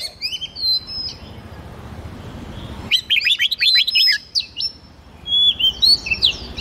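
Songbirds sing in quick, bright whistling phrases.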